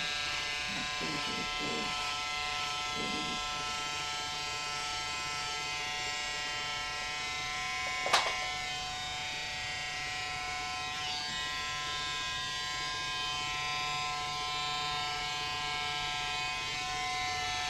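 Electric hair clippers buzz while cutting a man's hair.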